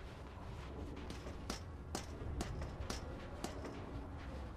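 Boots clank on metal ladder rungs.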